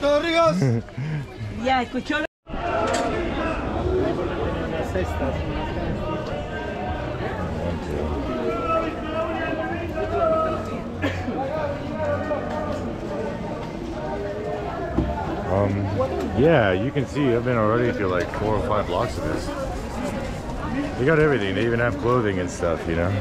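A crowd of people chatters in a busy outdoor market.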